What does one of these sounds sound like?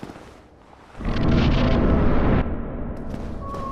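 A deep rushing whoosh swells as a figure walks through a wall of mist.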